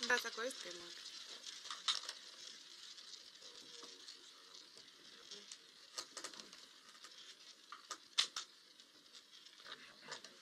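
A roulette ball rolls and rattles around a spinning wheel.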